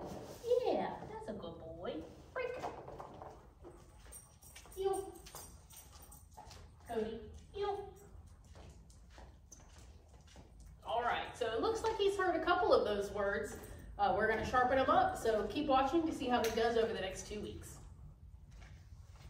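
A woman speaks to a dog in a large echoing room.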